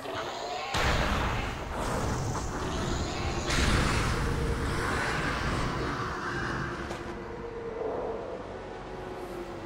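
Flames crackle and whoosh.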